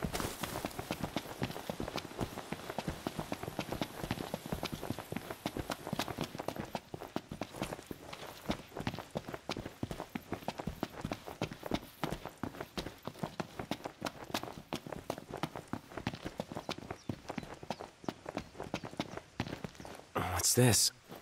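Quick footsteps run over dry ground and hard floor.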